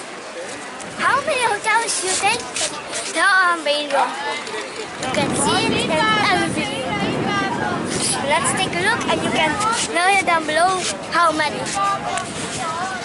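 A young girl talks and sings playfully close by.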